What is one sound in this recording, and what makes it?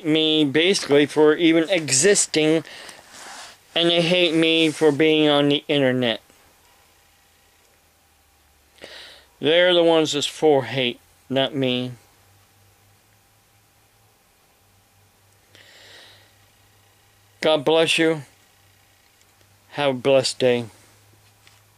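An elderly man talks calmly and close up, with pauses.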